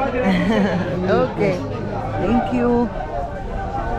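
An elderly man talks on a phone close by.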